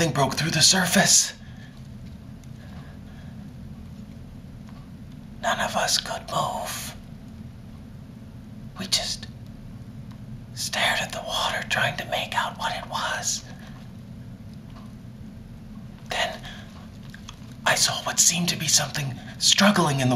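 A man talks close by in an animated, theatrical voice, in short bursts.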